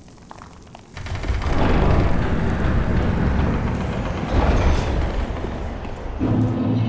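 A heavy wooden door creaks open with a loud rumble.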